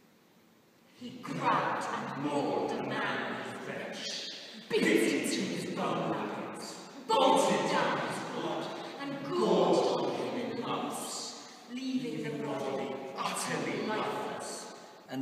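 A group of young men and a woman sing loudly in a large echoing hall.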